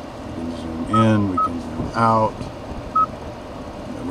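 A touchscreen gives short beeps as it is pressed.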